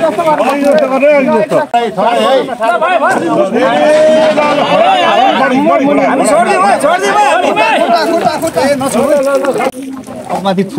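A crowd of men shout and call out together nearby.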